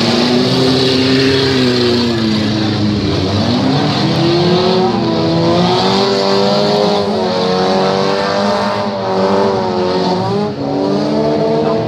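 A car engine revs loudly, its pitch rising and falling.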